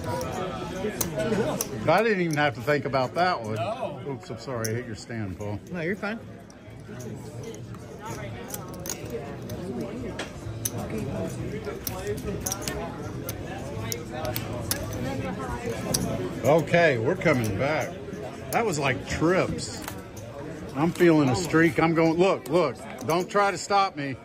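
Casino chips clack together as they are stacked and set down.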